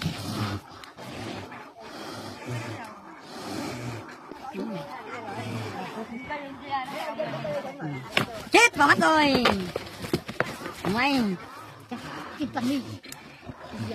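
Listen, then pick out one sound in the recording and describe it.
Water buffalo clash heads and scuffle their hooves on dirt.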